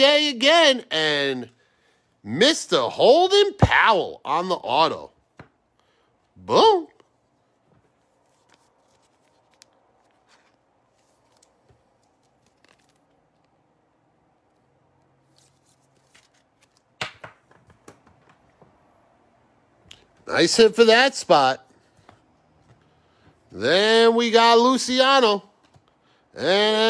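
Stiff cards shuffle and rustle in hands close by.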